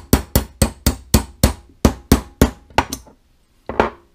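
A small hammer taps metal in quick, sharp blows.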